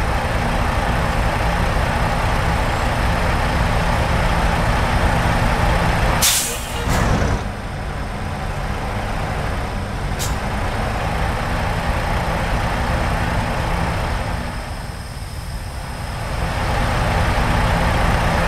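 A truck's diesel engine rumbles steadily at low speed.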